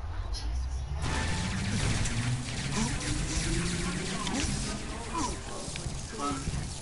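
An energy weapon fires in rapid crackling bursts.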